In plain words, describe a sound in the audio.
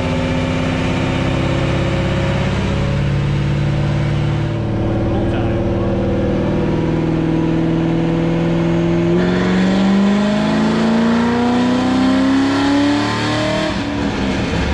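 A car engine runs loudly and revs up, then drops off.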